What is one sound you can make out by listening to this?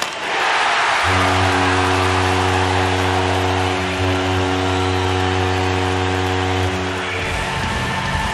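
A goal horn blares loudly and steadily.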